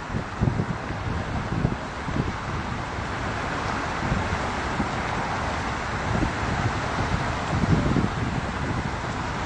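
A vehicle's tyres roar steadily on a highway.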